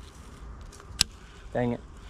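A fishing reel clicks.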